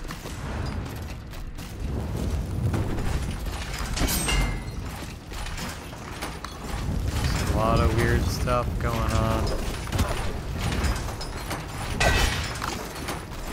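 A sword swishes through the air in quick slashes.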